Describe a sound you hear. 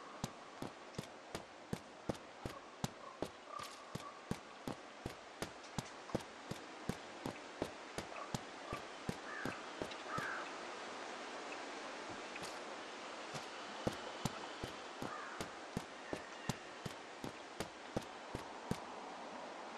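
Footsteps tread steadily on grass and dirt.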